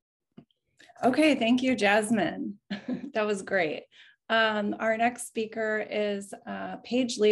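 A woman speaks cheerfully with animation over an online call.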